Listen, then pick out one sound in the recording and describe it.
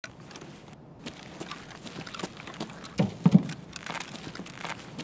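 Footsteps thud on a hard floor in a large echoing hall.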